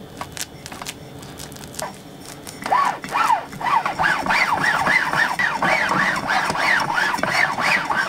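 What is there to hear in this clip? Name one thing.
A knife scrapes as it spreads soft cream.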